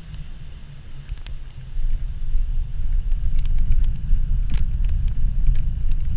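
Bicycle tyres rumble loudly over cobblestones.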